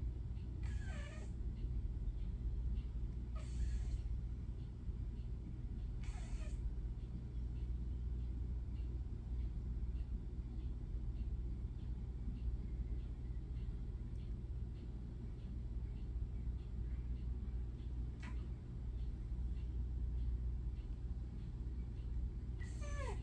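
A cat snores softly and steadily close by.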